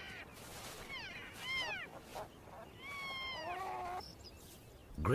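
An elk bugles with a high, gliding whistle.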